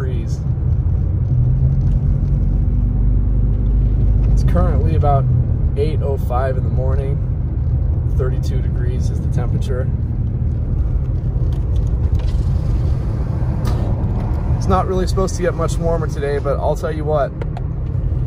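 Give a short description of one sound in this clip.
A car engine rumbles low and steady while driving.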